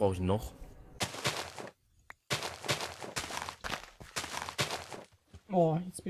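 A shovel crunches into gravel again and again.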